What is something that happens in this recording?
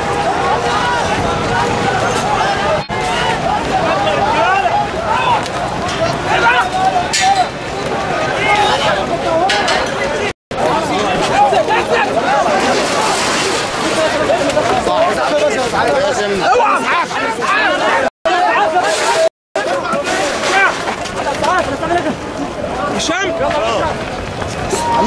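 A crowd of men shouts and talks excitedly nearby, outdoors.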